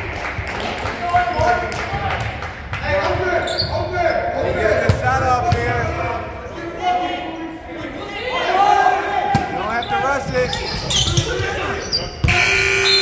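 Young men shout and call out to each other in an echoing gym.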